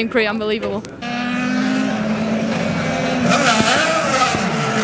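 A race car engine roars past at high speed.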